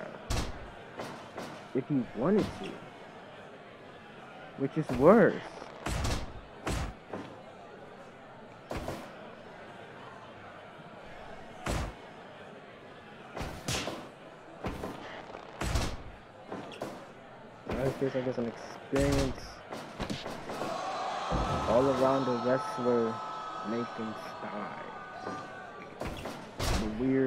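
Heavy blows and body slams thud sharply, again and again.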